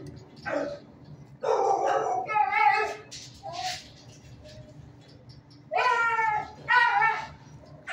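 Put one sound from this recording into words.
A dog whines and yelps in short bursts close by.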